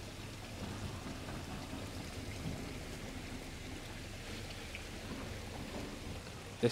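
Water splashes softly as a net is moved through a pond.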